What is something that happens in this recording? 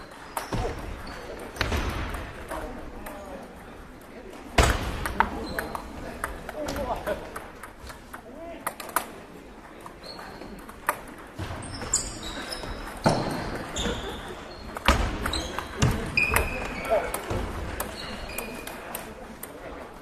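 A table tennis ball clicks back and forth between paddles and a table in a large echoing hall.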